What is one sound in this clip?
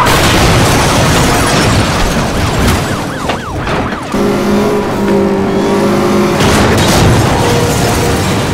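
A car crashes with a loud crunch of metal and shattering glass.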